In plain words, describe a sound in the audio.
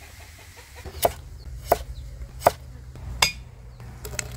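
A cleaver chops on a wooden block.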